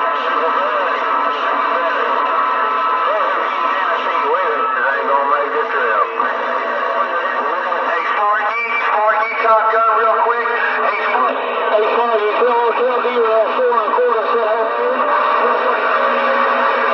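Distorted voices talk through a radio speaker.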